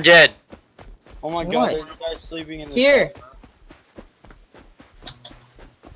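Footsteps tread steadily over sand and grass.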